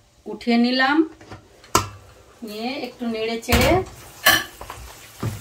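A metal lid clanks as it is lifted off a pan.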